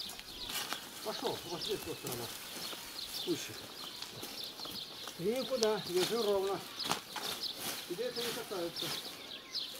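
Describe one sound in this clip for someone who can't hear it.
A woman talks and calls out nearby, outdoors.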